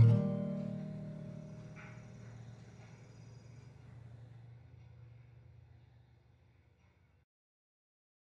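A guitar chord rings out and slowly fades away.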